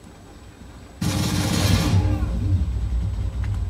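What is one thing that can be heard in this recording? A rifle fires in rapid bursts.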